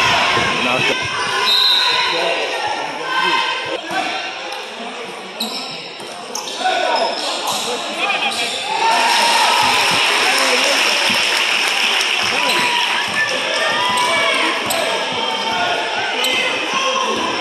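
A crowd of spectators chatters and cheers loudly in an echoing gym.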